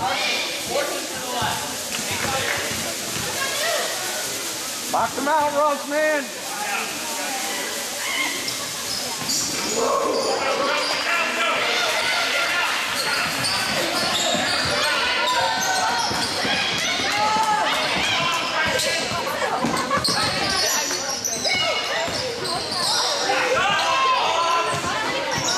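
Spectators in a large echoing gym chatter and call out.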